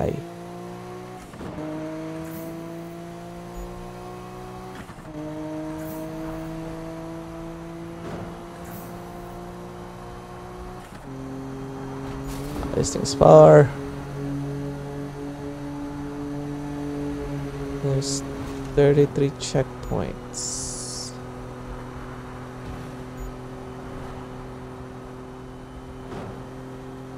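A car engine revs high and shifts up through the gears.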